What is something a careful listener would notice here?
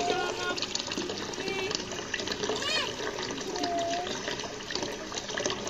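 Water trickles from a pipe into a pond.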